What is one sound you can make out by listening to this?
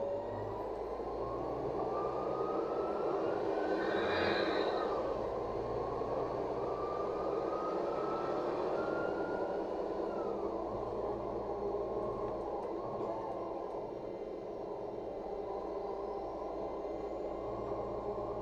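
A city bus drones and whines from inside as it drives along.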